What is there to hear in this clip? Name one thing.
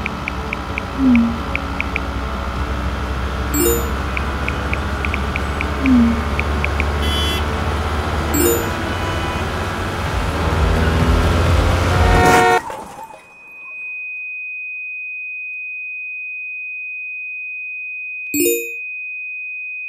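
A phone message alert chimes briefly.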